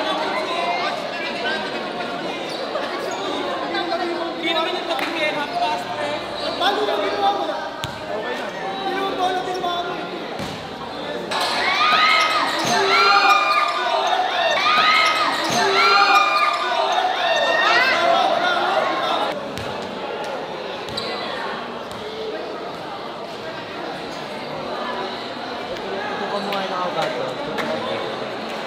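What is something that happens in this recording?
A large crowd chatters in an echoing hall.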